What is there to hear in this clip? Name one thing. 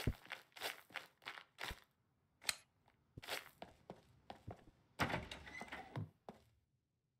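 Footsteps crunch steadily on gravel and hard ground.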